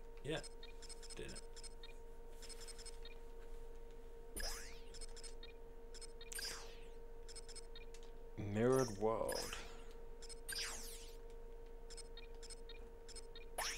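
Short electronic menu blips chirp as options change.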